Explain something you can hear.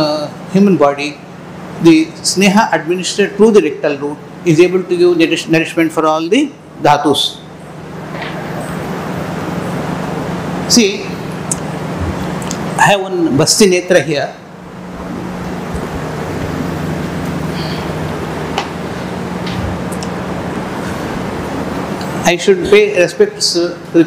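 An elderly man lectures through a microphone.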